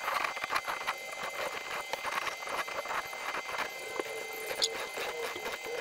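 A squeeze bottle sputters as liquid is squirted out.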